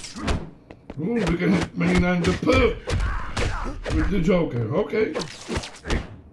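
A man talks with animation, close to a headset microphone.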